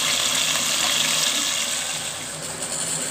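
Meat sizzles in hot oil.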